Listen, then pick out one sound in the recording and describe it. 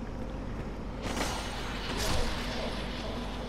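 A sword swishes through the air and strikes.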